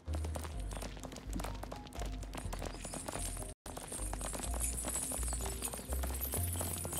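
Footsteps run quickly on dirt.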